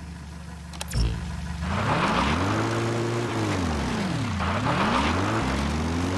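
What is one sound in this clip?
A jeep engine revs up and down as it drives over rough ground.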